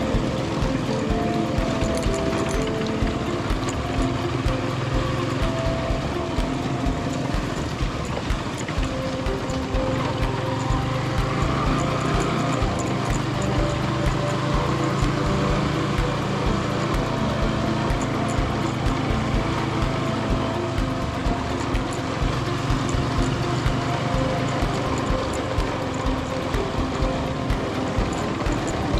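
Tyres rumble and crunch over a rough dirt road.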